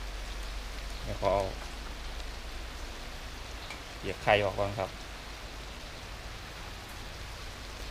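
Chopsticks stir and scrape noodles in a wok.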